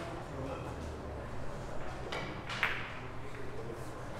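A cue strikes a billiard ball, and the balls click together sharply.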